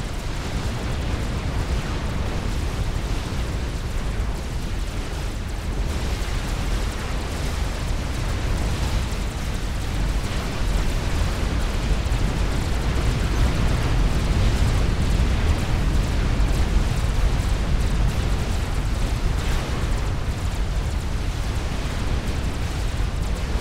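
Game weapons fire and explosions rumble steadily.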